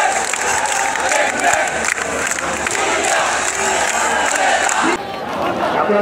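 A young man shouts through a microphone.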